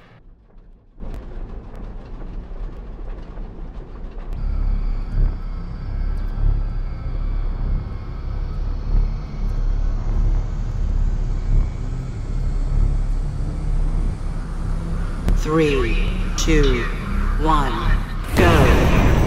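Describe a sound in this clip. Racing craft engines drone steadily with a low, rumbling hum.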